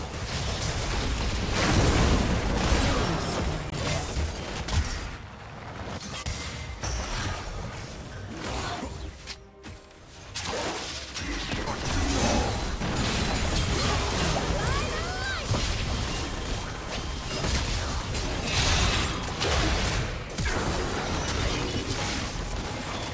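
Game spell effects whoosh and crackle during fights.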